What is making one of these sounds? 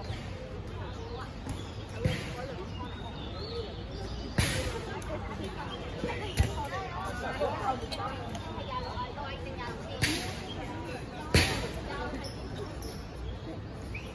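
Young women chatter and call out nearby, outdoors.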